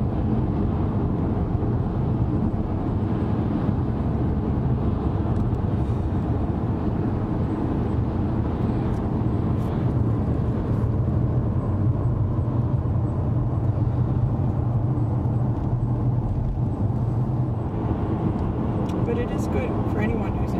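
A car drives along a highway, with road and engine noise heard from inside the car.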